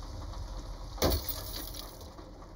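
Car window glass shatters.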